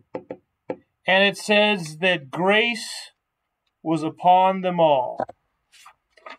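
A man speaks clearly and steadily.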